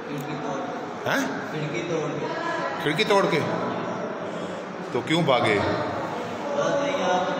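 A teenage boy speaks calmly, close by.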